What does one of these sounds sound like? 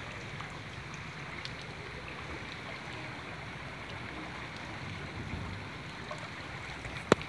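Floodwater flows steadily along a street outdoors.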